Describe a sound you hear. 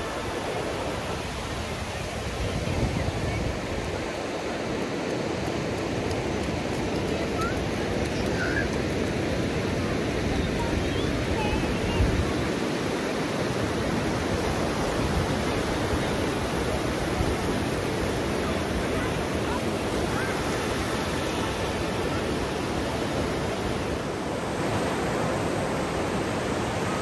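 Wind blows into a microphone with low rumbles.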